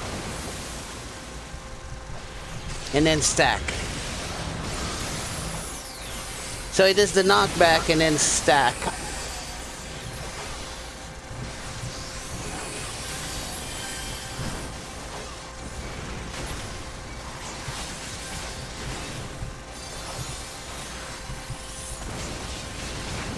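Magic blasts burst and crackle during a fantasy battle.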